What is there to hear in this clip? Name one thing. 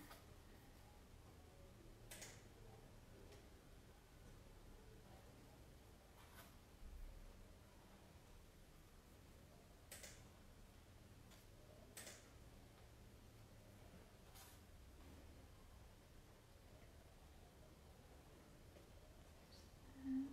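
A paintbrush taps softly on paper.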